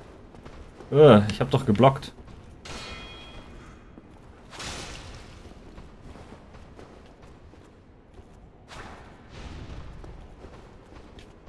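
Armoured footsteps clank on stone stairs.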